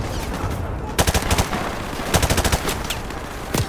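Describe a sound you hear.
A rifle fires in quick bursts of sharp cracks.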